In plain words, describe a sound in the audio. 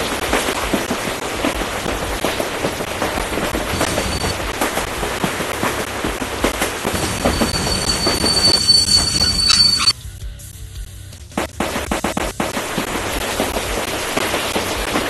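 A train rumbles and clatters along a track.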